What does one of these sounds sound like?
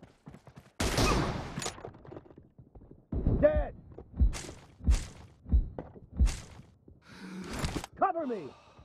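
Loud gunshots fire in sharp, spaced bursts.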